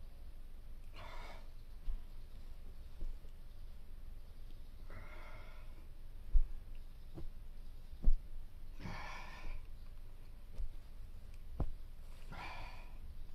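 A man exhales deeply at slow, even intervals.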